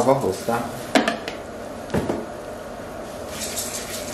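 A wooden spoon stirs in a metal pot.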